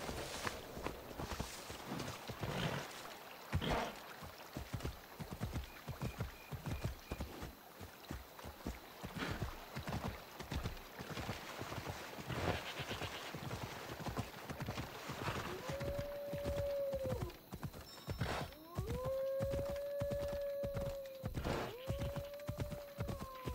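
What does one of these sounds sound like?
A horse's hooves gallop steadily over a dirt path.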